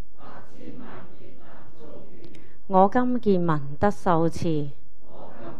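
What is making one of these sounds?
An elderly woman speaks calmly into a microphone, chanting slowly in a clear, steady voice.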